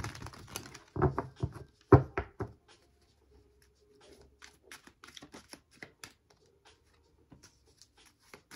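Cards are shuffled by hand with soft flicking taps.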